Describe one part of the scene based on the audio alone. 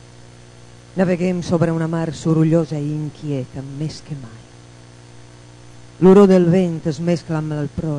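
A woman speaks into a microphone, reading out through loudspeakers in a hall.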